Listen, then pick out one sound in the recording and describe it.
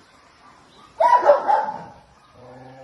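A dog barks loudly once.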